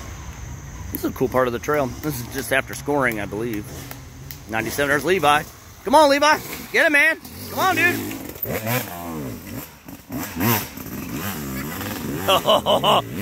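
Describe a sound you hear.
A dirt bike engine revs up and down close by, its pitch rising and falling.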